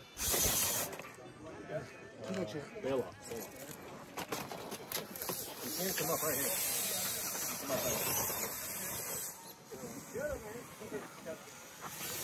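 A small electric motor whines as a toy truck climbs over rock.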